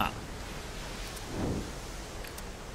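An arrow whooshes and strikes with a thud.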